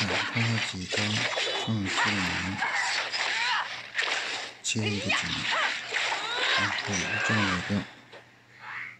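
Sword slashes and magic blasts whoosh and crash in quick bursts.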